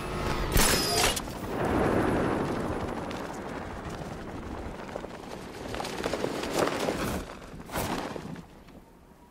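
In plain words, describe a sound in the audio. Wind rushes past while gliding through the air.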